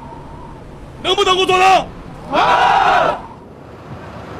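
A crowd of men cheers together.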